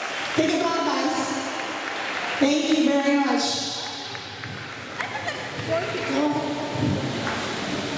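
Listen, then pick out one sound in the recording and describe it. Young children cheer and shout loudly in bursts.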